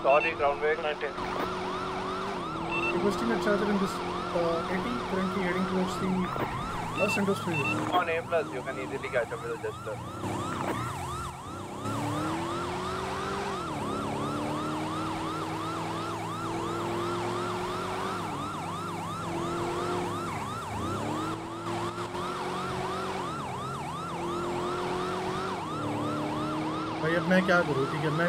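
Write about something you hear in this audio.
A police siren wails rapidly and steadily.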